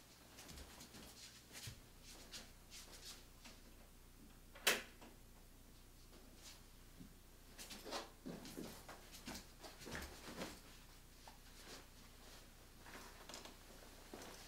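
Footsteps thud softly on a floor indoors.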